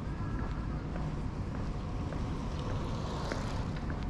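A bicycle rolls past close by on pavement.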